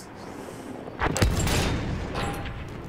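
A large gun fires with a deep boom.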